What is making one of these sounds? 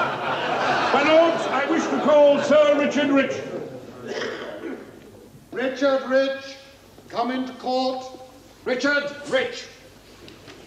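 A man speaks loudly and firmly, in a large echoing hall.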